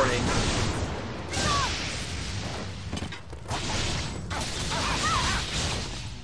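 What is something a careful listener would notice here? Lightning crackles loudly.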